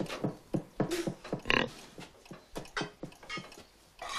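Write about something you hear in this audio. Hooves clatter on a wooden floor.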